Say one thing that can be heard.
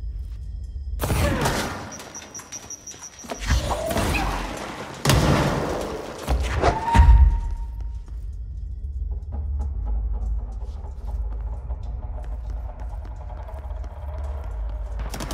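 Chunks of concrete crash and shatter against walls.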